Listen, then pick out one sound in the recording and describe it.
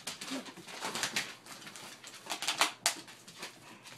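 A squeaky toy squeaks as dogs tug at it.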